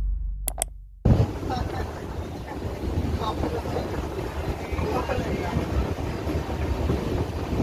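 A train rumbles and rattles along the tracks with wind rushing past.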